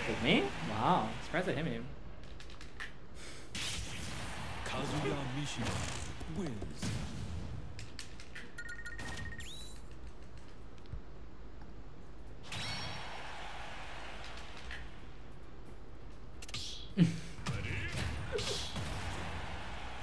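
Video game sound effects whoosh and chime.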